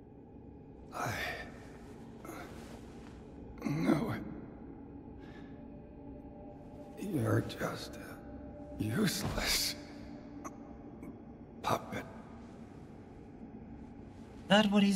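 An elderly man speaks in a strained, pained voice, close by.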